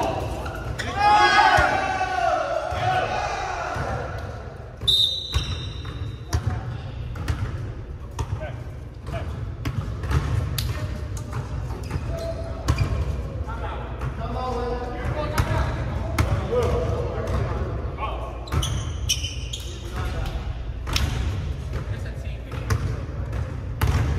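A basketball bounces and thuds on a wooden floor in a large echoing hall.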